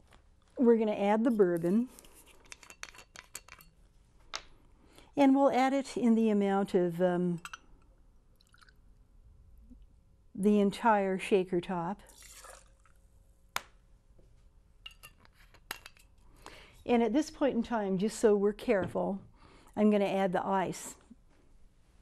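A middle-aged woman talks with animation into a close microphone, in short bursts.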